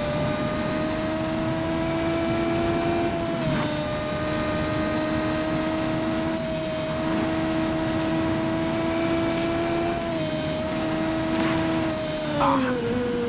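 A racing car engine whines steadily at high speed.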